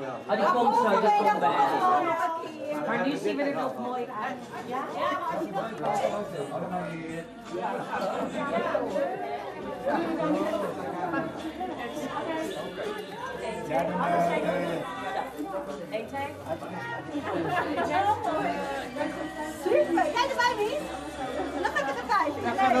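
A crowd of men and women chatters throughout a room.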